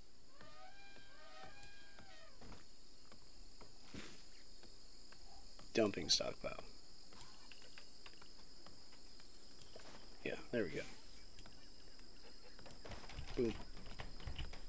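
Short game interface clicks and blips sound as areas are marked out.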